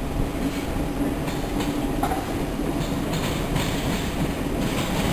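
A train rolls slowly along the tracks in the distance.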